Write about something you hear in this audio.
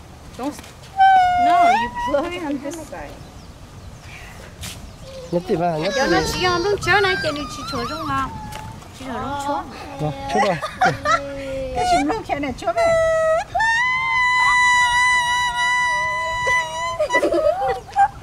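A woman blows a leaf whistle, making shrill squeaky tones.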